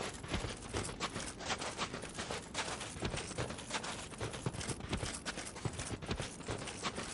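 Metal armour clinks and rattles with each step.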